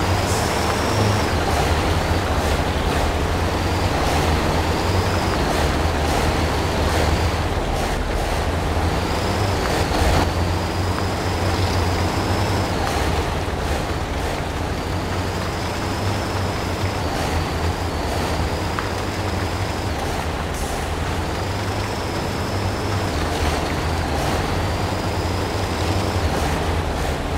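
A heavy truck engine rumbles and strains steadily.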